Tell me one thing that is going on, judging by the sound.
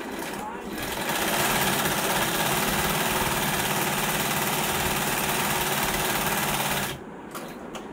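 A sewing machine runs steadily, stitching leather.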